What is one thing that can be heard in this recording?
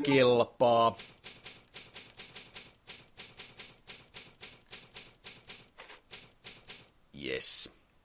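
A typewriter clacks in quick, even keystrokes.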